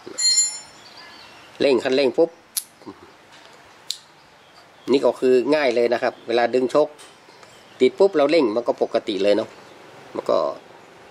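Small metal engine parts click softly together.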